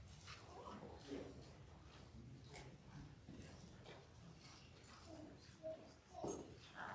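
A woman speaks calmly and gently to children.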